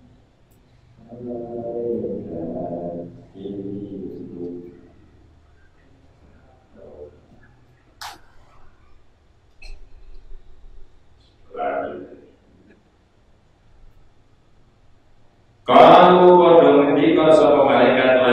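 A middle-aged man speaks calmly into a microphone, pausing often.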